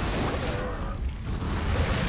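A fiery explosion bursts loudly in a video game.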